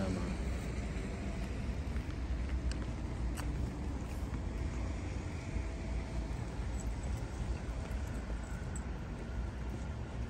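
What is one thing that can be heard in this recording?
Footsteps scuff on a wet pavement.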